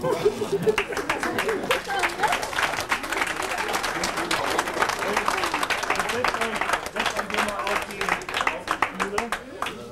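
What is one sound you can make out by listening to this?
A crowd laughs and cheers.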